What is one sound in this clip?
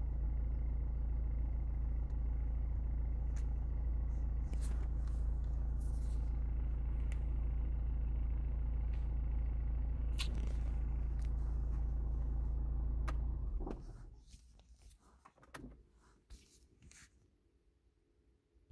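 Fingers tap on a phone's glass.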